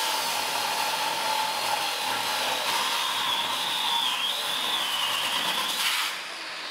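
An angle grinder whines loudly as it grinds metal.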